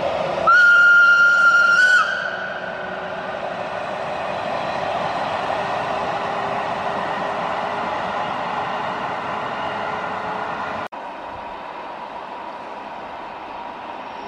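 A river rushes steadily over stones.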